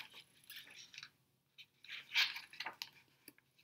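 A book page is turned with a soft rustle.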